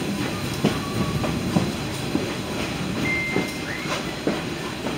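Metal squeals briefly from a train's wheels.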